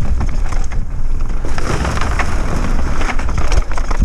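Bicycle tyres clatter over wooden boards.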